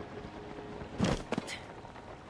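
A figure lands on stone with a thud.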